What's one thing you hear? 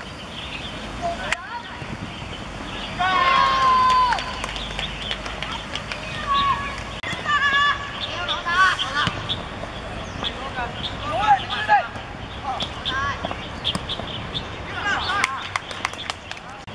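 Young players shout and call out across an open field.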